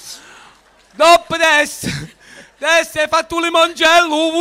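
A man sings loudly and brightly into a microphone.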